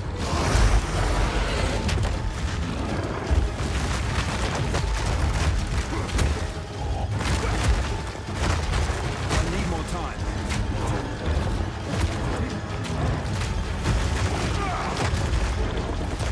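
Spell blasts and impacts crash and boom in a game battle.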